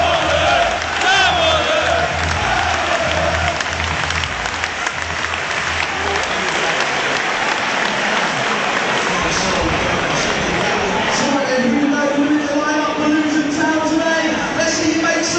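Men shout and call to each other across an open pitch at a distance.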